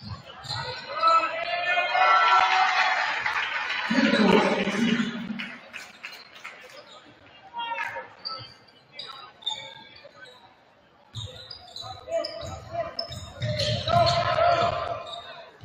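A crowd in an echoing gym shouts and cheers.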